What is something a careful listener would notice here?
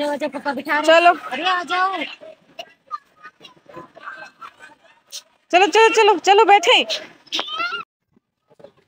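A young child talks excitedly nearby.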